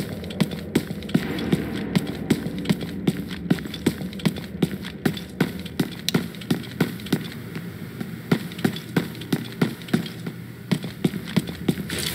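Footsteps thud steadily and briskly on a hard floor.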